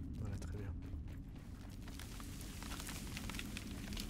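Footsteps crunch on soft dirt.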